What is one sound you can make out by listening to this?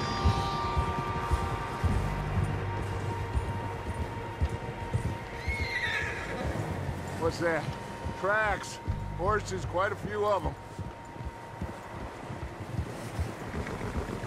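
Horses' hooves crunch and thud through deep snow.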